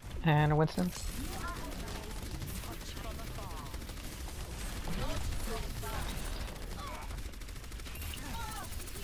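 A video game energy gun fires repeated bursts.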